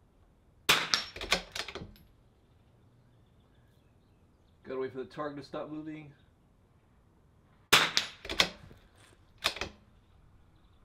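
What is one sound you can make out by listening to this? A rifle fires loud, sharp shots that echo and roll away outdoors.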